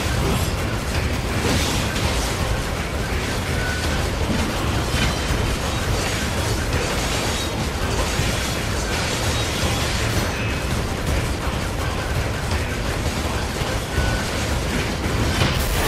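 Gunfire and explosions crack and boom in a fast battle.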